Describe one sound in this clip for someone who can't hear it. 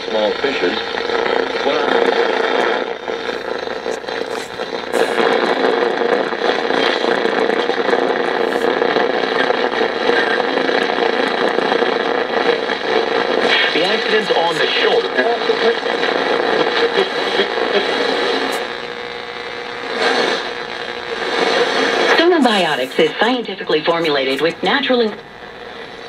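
A radio plays a noisy, crackling broadcast.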